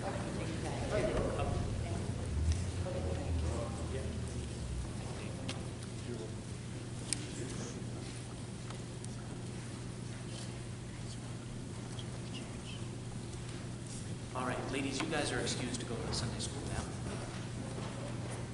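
Men and women murmur and chat quietly in an echoing hall.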